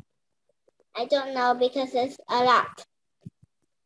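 A young girl speaks through an online call.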